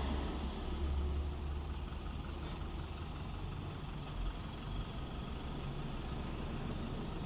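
A truck engine idles close by with a low rumble.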